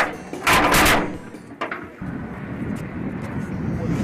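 A heavy metal gate clanks open.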